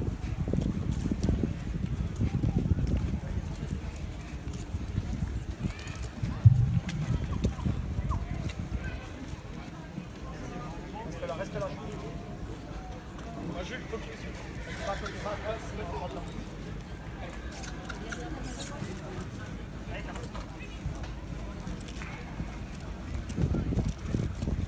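A crowd murmurs and chatters outdoors in the distance.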